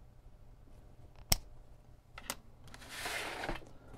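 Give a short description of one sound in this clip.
A cable plug clicks as it is pulled from a small socket.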